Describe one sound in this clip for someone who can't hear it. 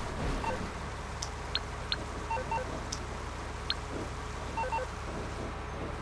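A heavy tank engine rumbles steadily as the tank drives.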